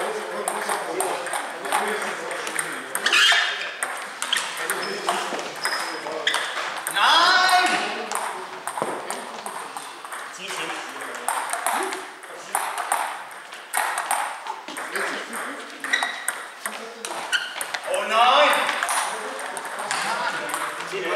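Table tennis balls click sharply off paddles and tables in a large echoing hall.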